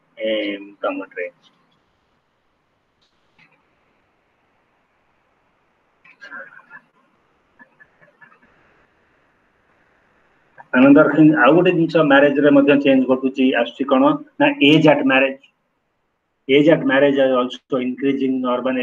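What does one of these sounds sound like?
A man speaks close to a microphone, as over an online call.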